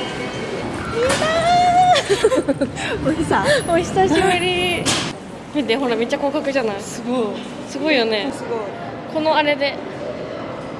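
Two young women chat nearby with animation.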